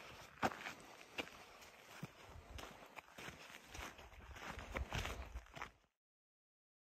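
Footsteps crunch on a dirt track outdoors.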